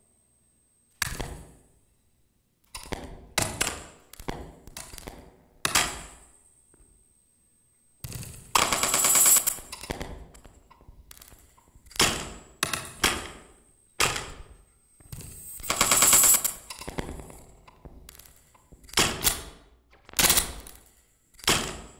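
A drummer hits drums in loud, uneven bursts.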